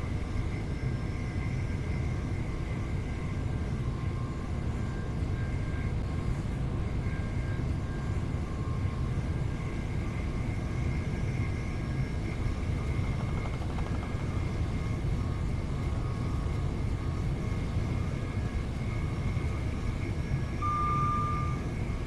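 An electric train motor hums with a steady whine.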